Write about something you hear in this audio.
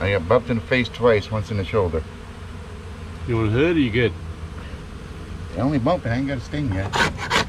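An older man talks calmly and close by.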